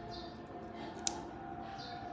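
A small plug clicks into a socket.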